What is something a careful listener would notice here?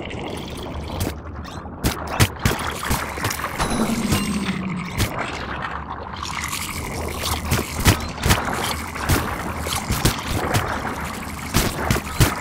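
Video game combat sound effects of sharp hits and energy blasts crack out in bursts.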